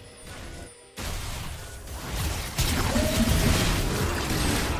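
Game spell effects burst and crackle in a fight.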